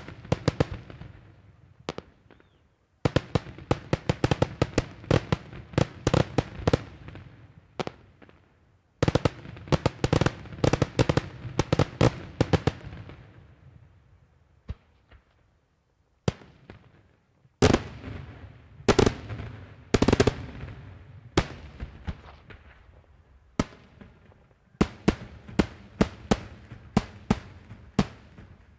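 Fireworks burst in rapid volleys of loud bangs that echo across open ground.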